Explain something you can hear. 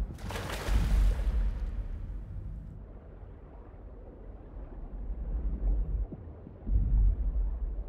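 Water swirls and gurgles in a low, muffled way.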